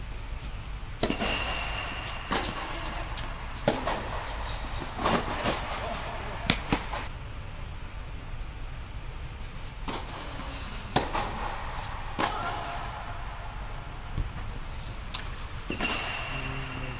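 Tennis balls are struck with sharp pops in a large echoing hall.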